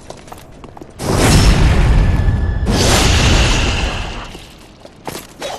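A loud rushing burst of noise swells and fades.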